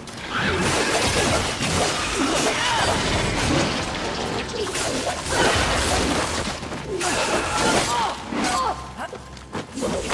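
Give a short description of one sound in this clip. Monsters screech and growl.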